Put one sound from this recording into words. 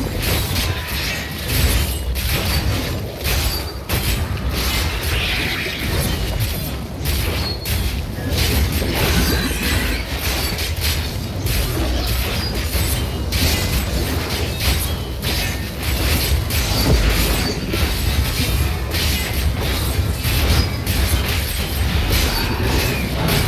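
Weapons strike and slash at creatures in quick, repeated hits.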